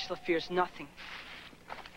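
A young man speaks sharply and angrily up close.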